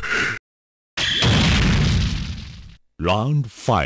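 A loud rushing blast roars and fades away.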